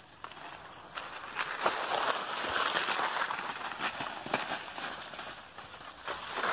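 A bicycle rattles over bumpy ground.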